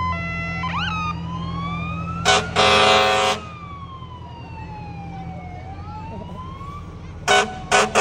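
A fire engine siren wails, rising and falling.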